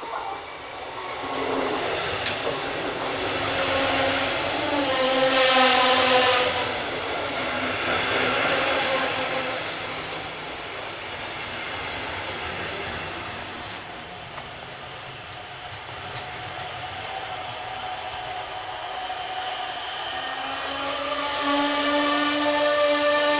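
A train rolls into the station close by, rumbling and clattering over the rails.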